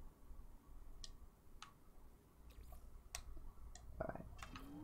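Short electronic clicks sound as menu items are selected.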